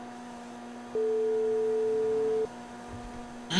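A phone call rings out with a steady beeping tone.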